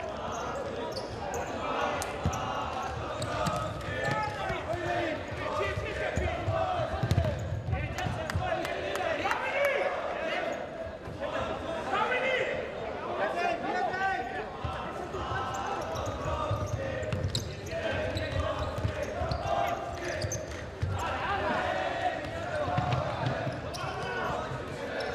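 A ball thuds sharply as players kick it.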